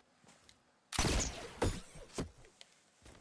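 Shots crack in quick bursts.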